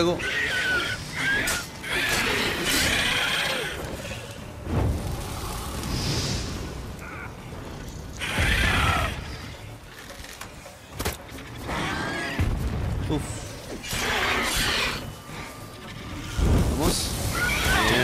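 Fire bursts and crackles.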